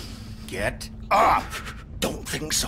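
A deep-voiced man shouts angrily.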